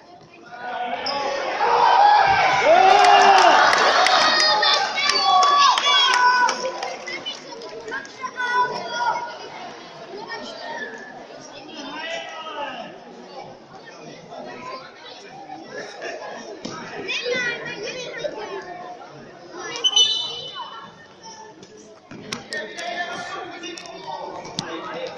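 Children shout and call out in a large echoing hall.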